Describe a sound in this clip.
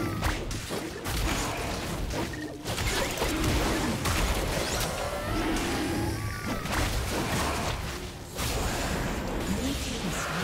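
Game spell effects crackle and burst.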